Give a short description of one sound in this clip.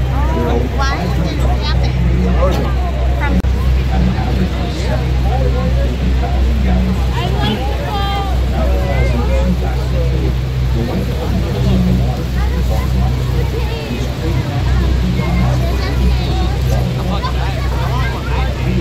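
A crowd of passengers chatters and calls out.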